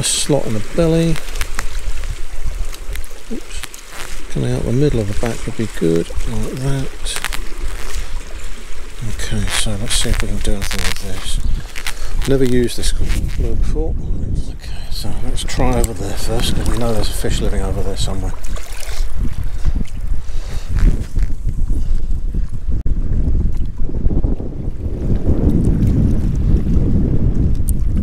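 Wind rumbles and buffets outdoors by the sea.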